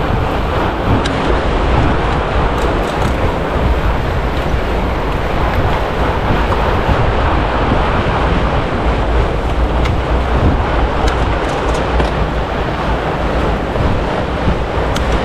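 Bicycle chains and gears click and rattle.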